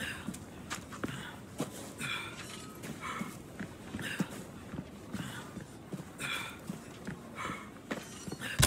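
Footsteps run on dirt ground.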